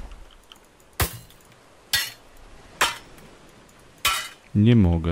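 A sledgehammer strikes a wall with heavy thuds.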